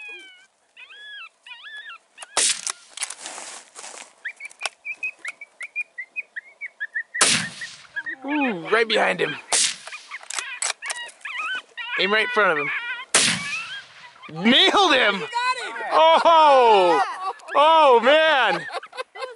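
A coyote yips and howls across open ground, in rising and falling wavering calls.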